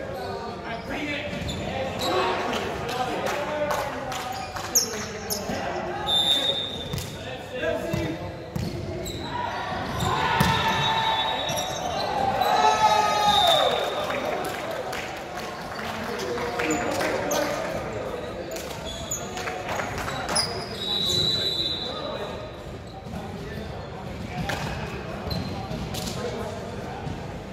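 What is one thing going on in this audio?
Young men shout and call to each other in a large echoing gym.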